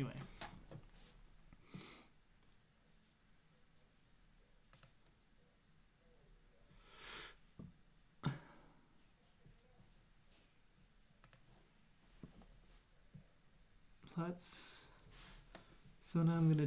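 A young man speaks calmly and haltingly into a close microphone.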